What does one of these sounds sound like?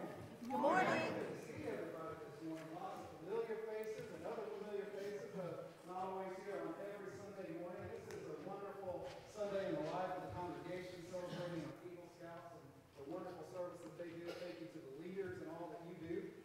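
A man speaks calmly to an audience through a microphone, in a large echoing hall.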